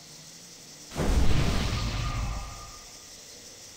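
A magical spell bursts with a loud rushing whoosh and fades.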